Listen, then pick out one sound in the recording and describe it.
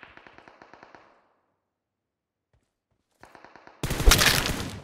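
Rapid gunfire rattles in short bursts.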